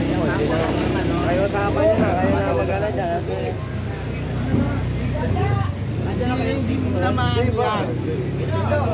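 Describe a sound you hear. Several men and women argue loudly and excitedly close by, outdoors.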